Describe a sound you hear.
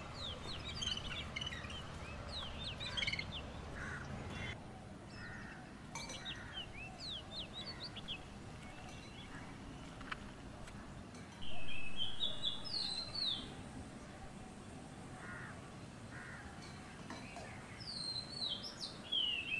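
A songbird sings nearby with quick, high chirps and whistles.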